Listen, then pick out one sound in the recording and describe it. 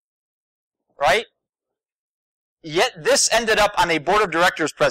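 A man speaks with animation into a microphone, heard through a loudspeaker.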